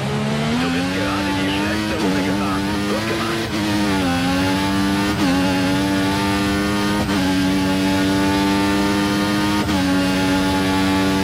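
A racing car engine screams at high revs, rising in pitch and dropping briefly at each gear change.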